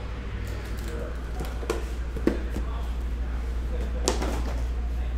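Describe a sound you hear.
A plastic case knocks and clatters on a table.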